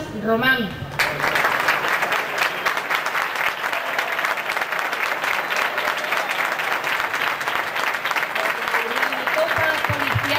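A seated crowd applauds outdoors.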